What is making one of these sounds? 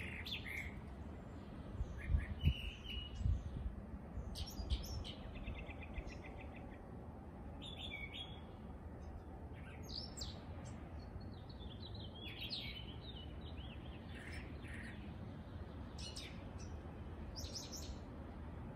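A small bird chirps and whistles in short, varied calls outdoors.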